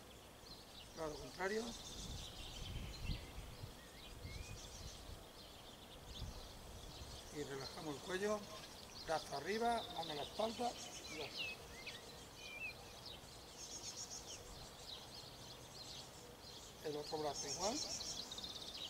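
A man speaks calmly at a distance outdoors.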